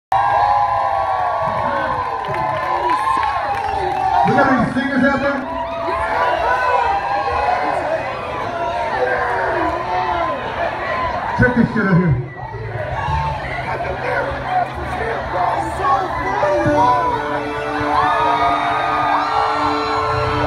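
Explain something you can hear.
A large crowd cheers, whistles and screams loudly outdoors.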